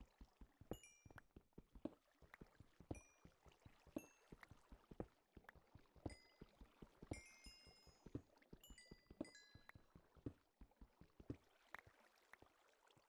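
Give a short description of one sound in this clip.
A pickaxe chips rapidly at stone with sharp knocks.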